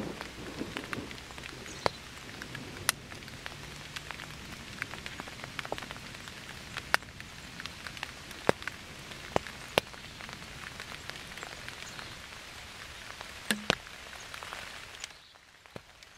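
Steady rain falls outdoors, with heavy drops tapping sharply now and then.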